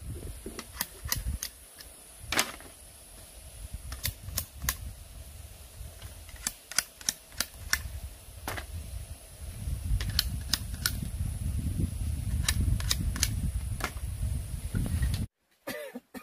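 A knife splits and scrapes strips of bamboo in sharp clicks.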